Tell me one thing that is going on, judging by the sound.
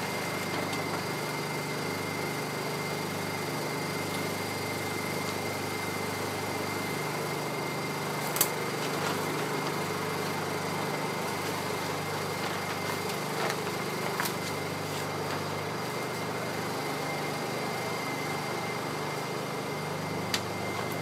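A plastic tarp rustles and crinkles as it is handled.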